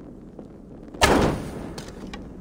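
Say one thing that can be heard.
A heavy wooden door thuds.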